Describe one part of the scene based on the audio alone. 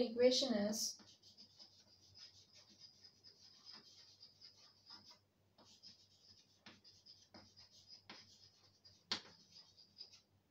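Chalk scratches and taps on a board while writing.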